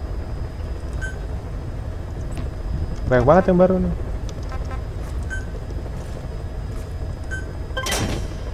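Short electronic menu beeps chime softly now and then.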